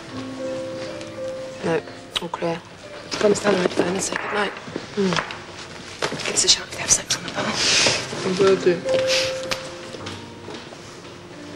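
Two women talk calmly, close by.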